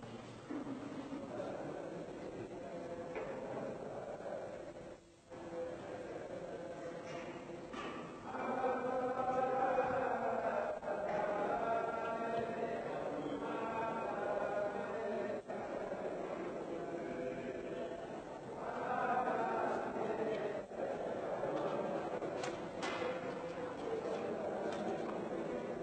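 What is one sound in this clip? Men's voices murmur and chant in a large echoing hall.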